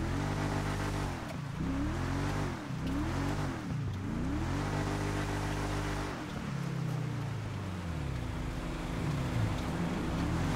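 A car engine revs up and down.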